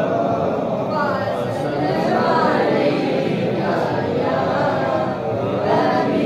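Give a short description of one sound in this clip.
A young man chants melodically into a microphone, heard through loudspeakers in an echoing hall.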